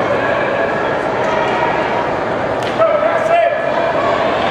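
A man shouts through cupped hands.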